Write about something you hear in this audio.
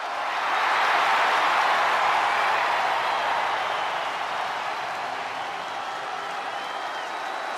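A large crowd cheers loudly in a big arena, swelling and then slowly easing off.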